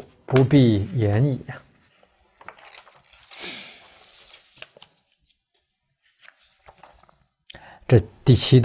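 A middle-aged man reads aloud calmly and slowly into a close microphone.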